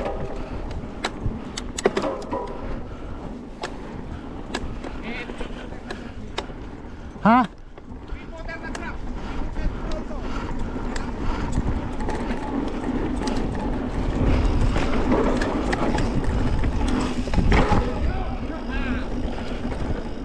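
Bicycle tyres crunch over a gravel trail.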